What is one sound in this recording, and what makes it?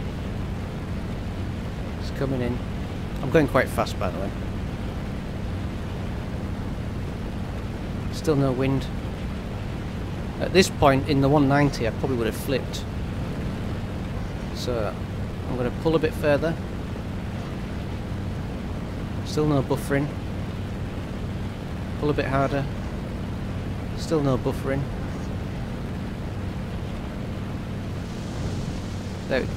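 A propeller plane's engine drones steadily.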